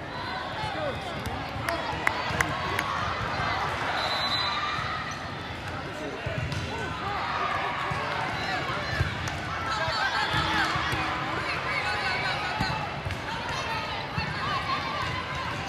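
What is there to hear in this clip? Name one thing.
A crowd of spectators chatters steadily in a large echoing hall.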